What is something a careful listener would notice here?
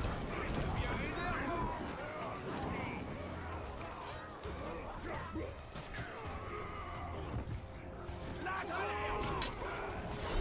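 Blades clash and strike in a fierce fight.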